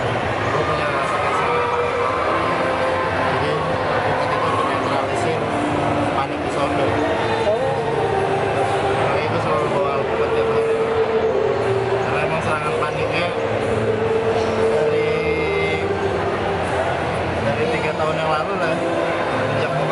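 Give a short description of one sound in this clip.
Crowd chatter echoes in a large indoor hall.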